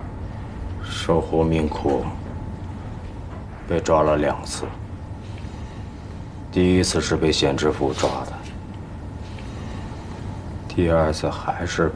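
A man speaks calmly and slowly nearby.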